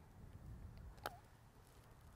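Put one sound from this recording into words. A golf club clips a ball on grass with a light tap.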